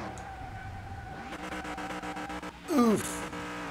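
Car tyres screech as they skid.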